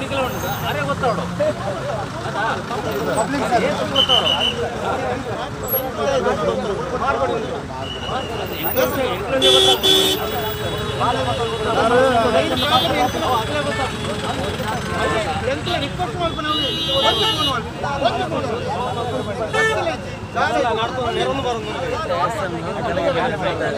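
A crowd murmurs nearby outdoors.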